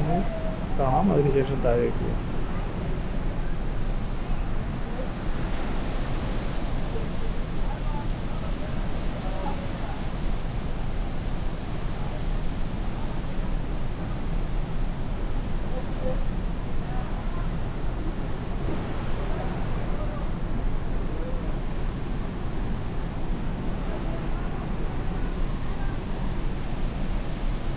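A huge waterfall roars steadily close by.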